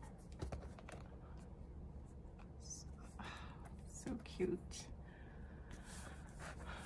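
Plastic album pages rustle and crinkle softly under handling fingers.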